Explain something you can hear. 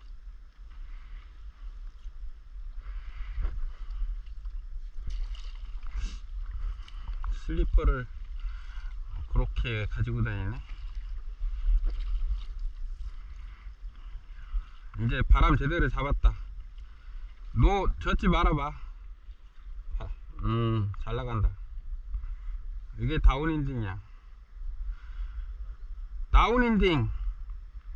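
A paddle dips and splashes softly in calm water.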